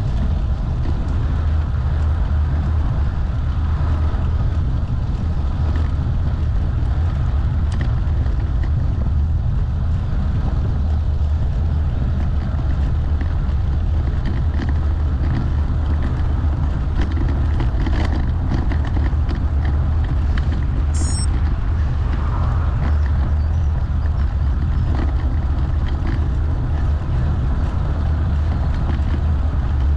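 Tyres rumble steadily on a rough road.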